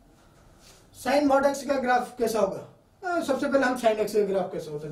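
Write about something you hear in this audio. A man speaks clearly and calmly, as if explaining to a class.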